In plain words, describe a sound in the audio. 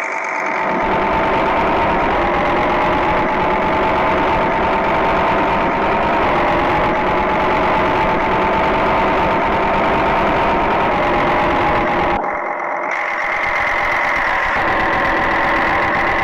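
A truck's diesel engine drones steadily and rises in pitch as it speeds up.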